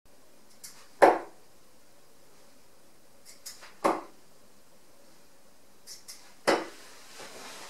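Darts thud sharply into a dartboard one after another.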